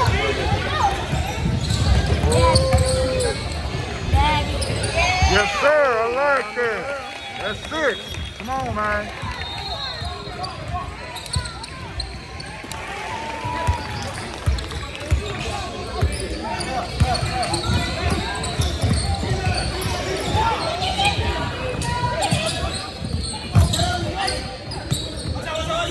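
Young players and spectators shout and call out across the gym.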